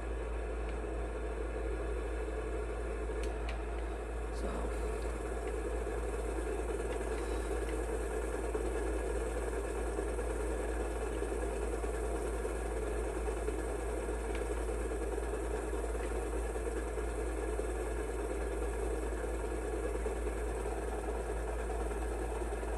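A tractor engine hums steadily from a television's speakers.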